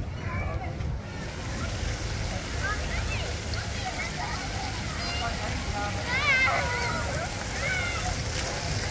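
Water fountains spray and splash steadily.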